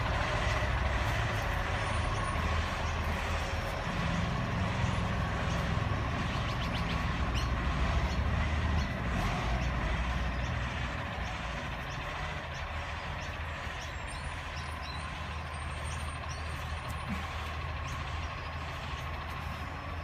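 A man's feet thump softly on grass as he jumps and drops.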